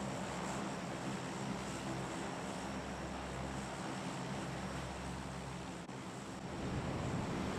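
Aircraft propeller engines drone steadily.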